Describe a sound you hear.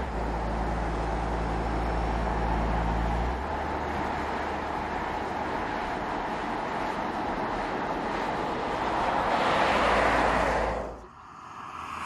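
A car's tyres hiss steadily on smooth pavement.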